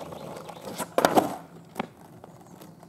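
A skateboard clatters and slaps against the ground.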